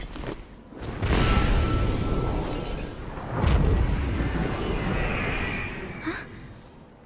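A magical whoosh swirls and roars, then fades.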